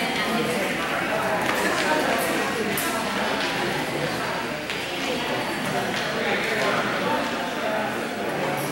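A crowd of adults murmurs and chatters in a large echoing hall.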